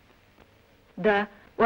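A man speaks a brief phrase firmly close by.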